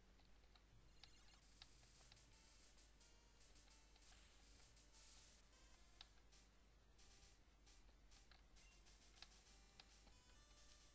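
Simple electronic game music plays softly.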